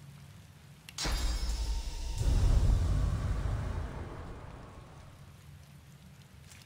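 A magic spell bursts with a loud rumbling whoosh that slowly fades.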